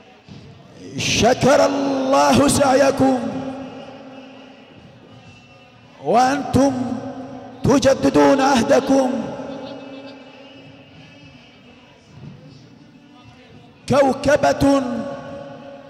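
A man chants in a wailing voice through a loudspeaker, in loud bursts.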